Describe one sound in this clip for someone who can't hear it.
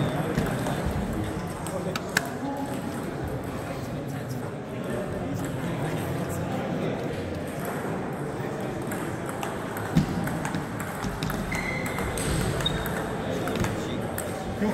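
A table tennis ball clicks off paddles and the table in a large echoing hall.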